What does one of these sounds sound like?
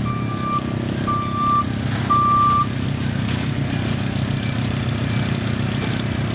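A backhoe engine rumbles nearby.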